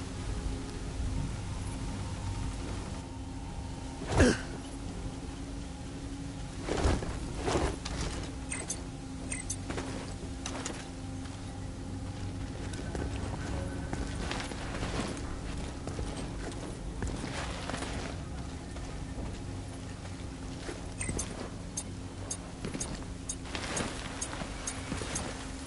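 Footsteps thud on the ground at a steady walking pace.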